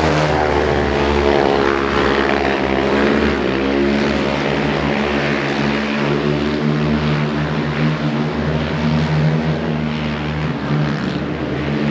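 Motorcycle engines roar loudly as they race around a track, revving up and down.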